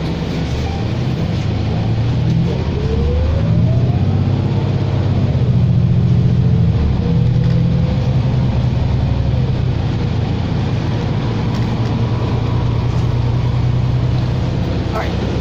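A bus engine roars louder, then settles.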